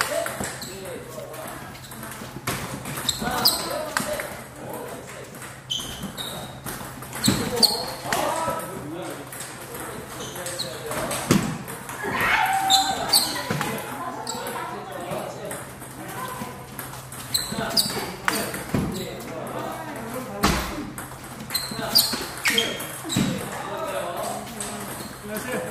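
A table tennis ball clicks back and forth off paddles and the table in a steady rally.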